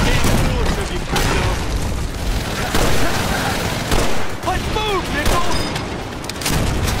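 Explosions rumble and boom in the distance.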